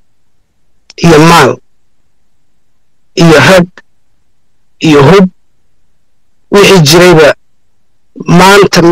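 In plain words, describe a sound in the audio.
A man speaks loudly in short bursts.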